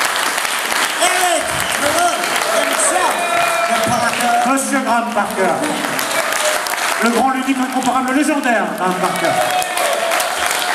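A man sings loudly through loudspeakers in a large echoing hall.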